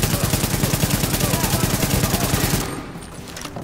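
Rapid gunfire rattles in fast bursts, then stops.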